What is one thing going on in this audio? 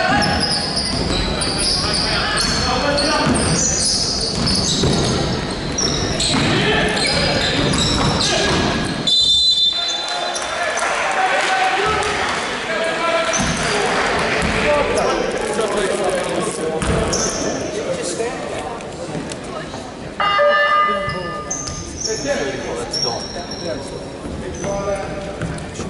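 Young players call out to each other across the court.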